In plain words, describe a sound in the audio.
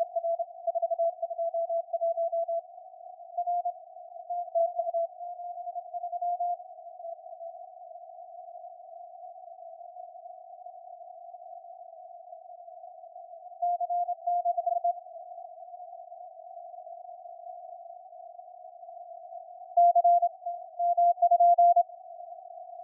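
Morse code beeps come in quick bursts from a radio receiver.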